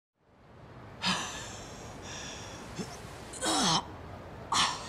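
A young man groans and gasps in pain close by.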